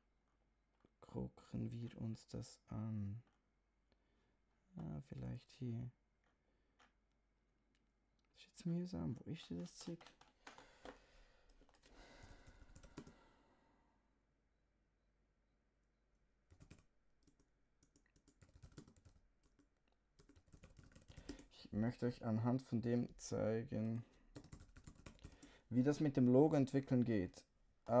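A young man speaks calmly and close to a microphone, in short bursts with pauses.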